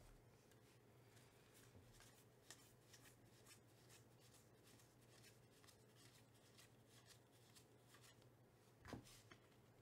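Cardboard trading cards flick and slide against each other as they are shuffled by hand.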